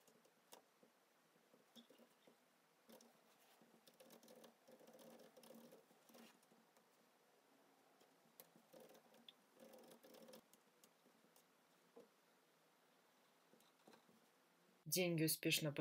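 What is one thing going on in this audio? Fingers tap softly on a laptop keyboard.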